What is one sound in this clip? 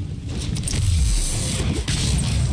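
A heavy blow thuds.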